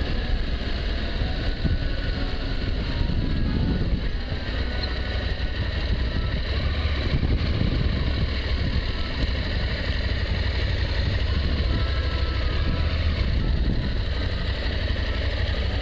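Wind rumbles against a rider's helmet.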